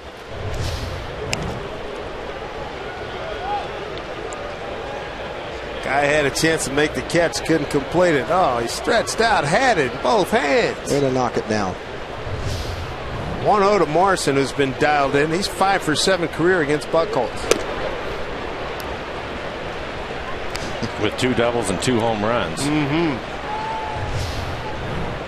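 A large stadium crowd murmurs and cheers.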